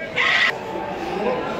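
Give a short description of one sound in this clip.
A goat bleats loudly.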